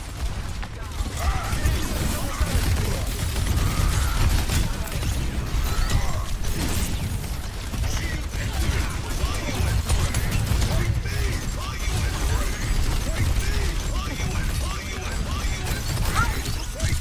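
Blasts boom and rumble.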